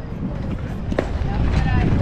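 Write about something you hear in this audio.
A bat hits a softball with a sharp crack.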